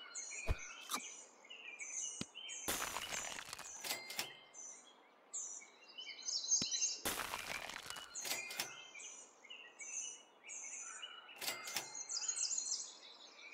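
Short game sound effects chime and pop.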